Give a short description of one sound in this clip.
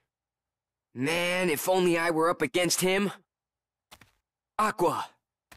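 A young man speaks with frustration, close by.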